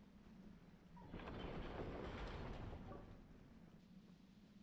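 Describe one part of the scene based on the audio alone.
A ghost whooshes past with a loud rushing sound.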